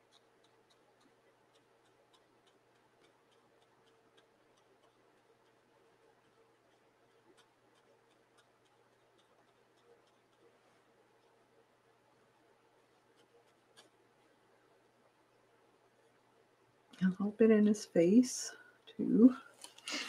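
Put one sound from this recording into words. A coloured pencil scratches softly on paper.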